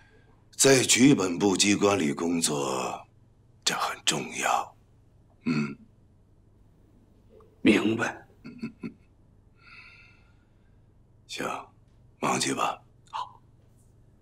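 A young man speaks calmly and firmly.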